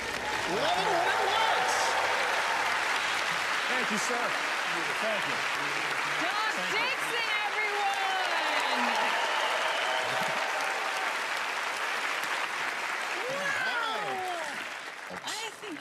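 A large audience claps and cheers loudly in an echoing hall.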